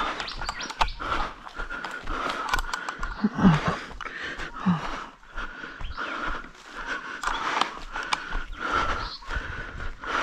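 Footsteps crunch through dry leaves and grass at a steady walking pace.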